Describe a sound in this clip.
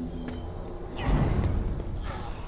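An axe swings through the air with a whoosh.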